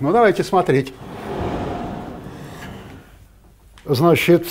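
A sliding chalkboard rumbles as it moves.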